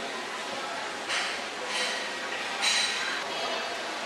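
An escalator hums steadily as it runs.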